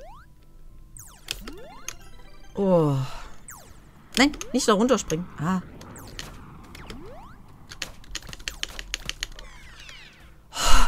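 Electronic game sound effects beep, zap and chirp.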